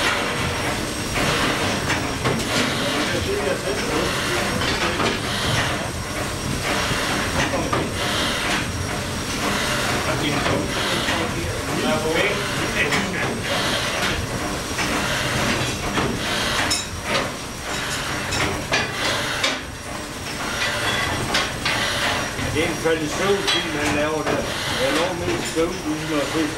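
A large engine thumps and clanks rhythmically as its rods pump.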